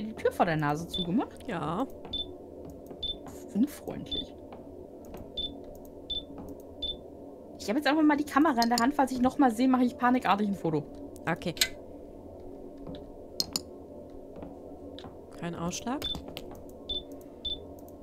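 A handheld meter beeps in short, regular chirps.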